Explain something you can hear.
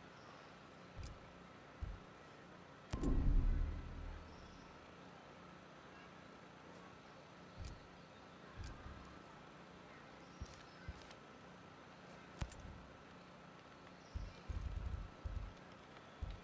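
Soft interface clicks tick now and then as menus change.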